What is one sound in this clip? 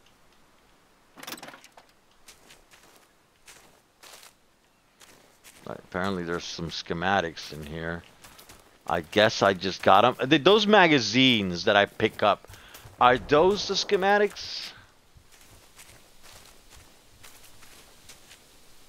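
Footsteps tread over grass and wooden boards.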